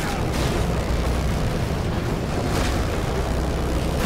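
Bodies thud against a vehicle.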